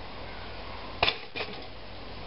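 A toaster pops up with a sharp click.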